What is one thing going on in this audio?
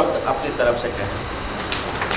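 A middle-aged man speaks into a microphone in an echoing room.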